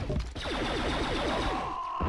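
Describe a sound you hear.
A blaster fires with sharp zaps.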